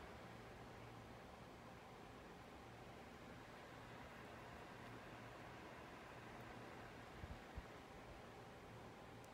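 A needle and thread pull softly through thick fabric.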